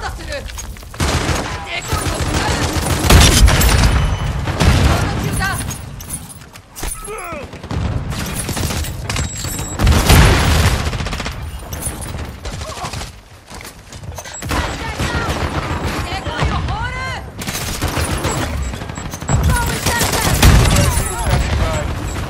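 A shotgun fires with loud booming blasts, several times.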